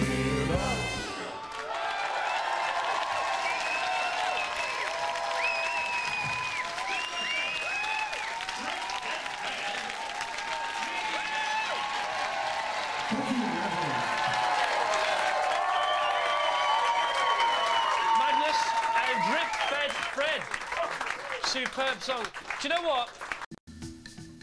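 A band plays a lively song on a stage.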